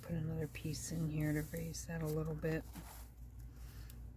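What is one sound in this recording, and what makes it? A stiff board cover flaps as a book is turned over.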